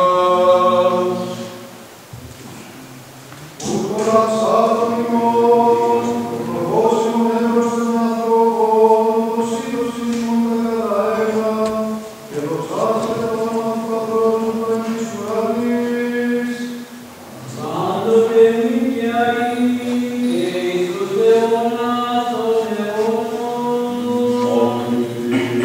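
A choir of men chants slowly in a large echoing hall.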